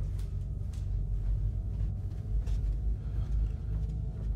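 Footsteps walk slowly across a hard floor indoors.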